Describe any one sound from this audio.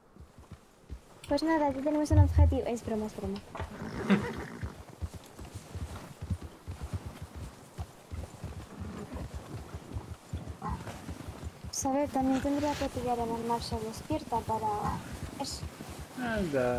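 Horses' hooves crunch and thud steadily through snow.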